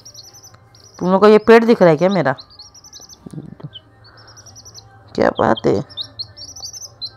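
Small chicks cheep in rapid, high peeps close by.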